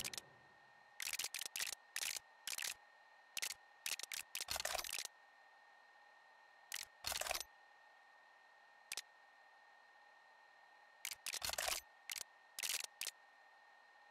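Short menu clicks and swishes sound as options are selected.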